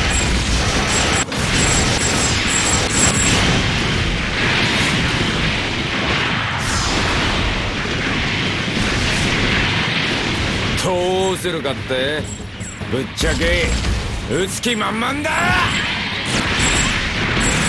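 Explosions boom and crackle over a dense battle.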